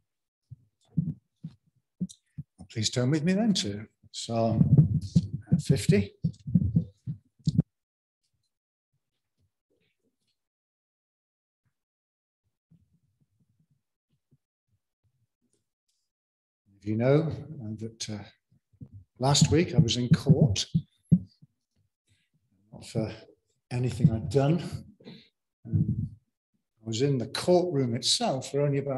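An elderly man speaks calmly through a microphone, pausing now and then.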